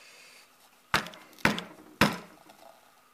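A plastic tube knocks sharply a few times.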